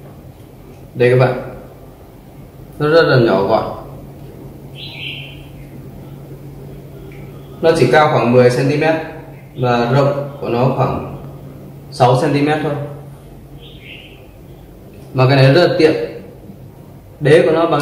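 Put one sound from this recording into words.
A young man speaks calmly and closely, explaining.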